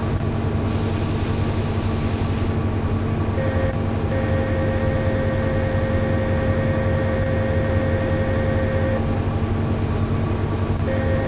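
A diesel engine rumbles steadily.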